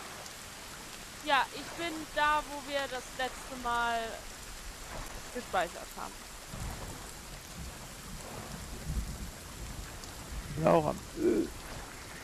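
Water splashes and laps as someone swims.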